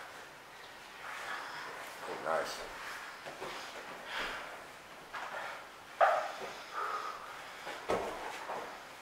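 Two people grapple and thud on a padded mat.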